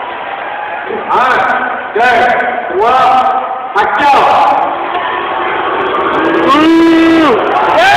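A crowd of fans chants loudly in short bursts.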